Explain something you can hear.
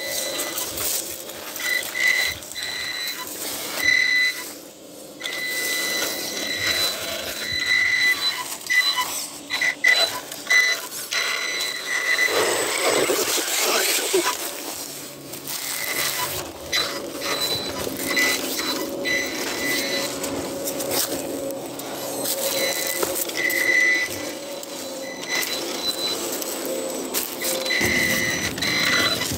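A small electric motor whines in short bursts.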